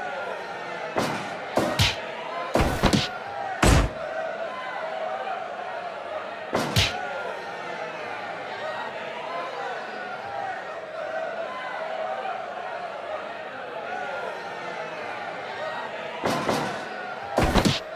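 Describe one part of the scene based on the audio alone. Heavy thuds of bodies slamming onto a ring mat.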